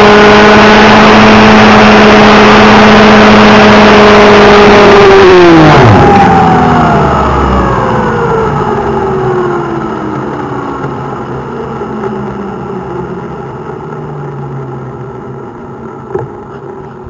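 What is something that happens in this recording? Helicopter rotor blades whoosh as they spin and slowly coast to a stop.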